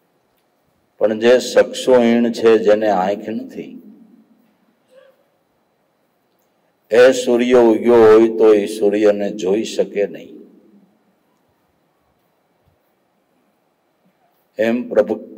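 An elderly man speaks calmly into a microphone in phrases with long pauses, heard through a loudspeaker.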